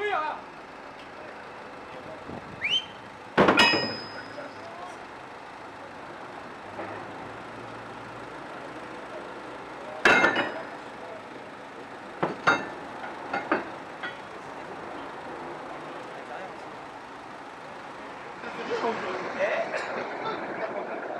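A crane's engine idles steadily nearby.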